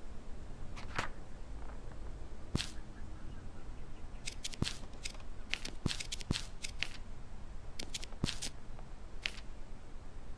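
Short soft clicks sound again and again as a menu is paged through.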